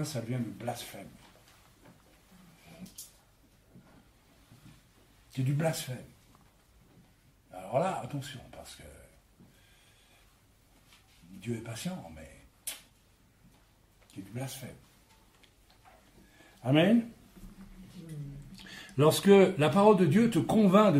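A man speaks calmly in short phrases with pauses, close to a microphone.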